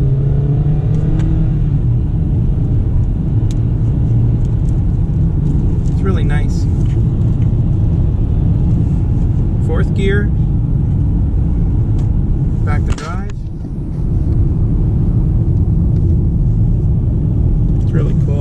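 Road noise roars loudly inside a moving car.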